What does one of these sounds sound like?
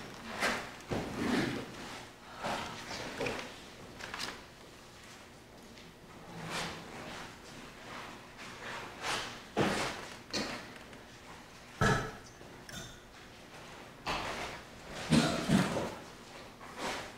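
A man speaks a prayer at a distance in an echoing room.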